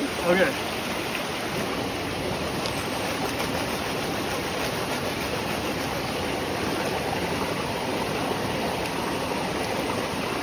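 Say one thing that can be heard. Water sloshes in a gold pan as it is swirled.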